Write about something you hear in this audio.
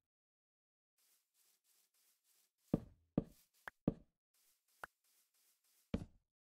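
Footsteps crunch steadily on dirt and gravel.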